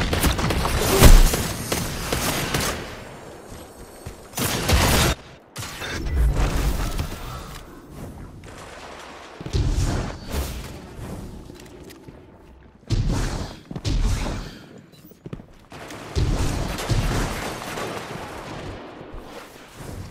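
Heavy gunshots boom in quick bursts.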